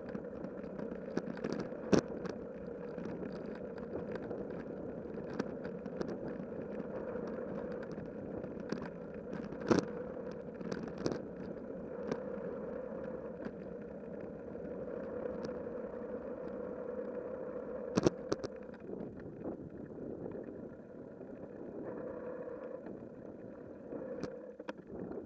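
A bicycle rolls steadily along a paved path with a low rumble.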